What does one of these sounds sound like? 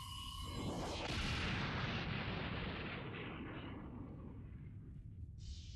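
A massive explosion booms.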